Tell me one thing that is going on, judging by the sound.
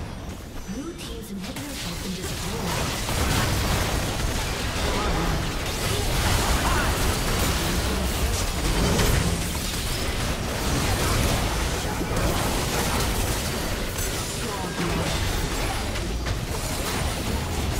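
Magical spell effects whoosh and burst rapidly.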